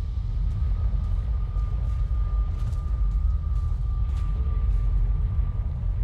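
A magical portal roars with a deep, steady rumble.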